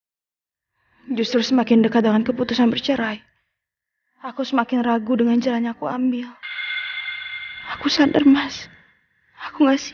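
A young woman sobs and cries loudly close by.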